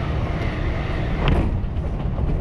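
A passing train rushes by close outside the window.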